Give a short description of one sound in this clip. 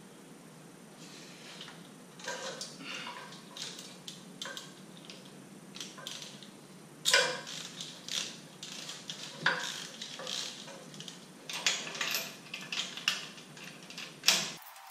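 An electric welder crackles and sizzles in short bursts.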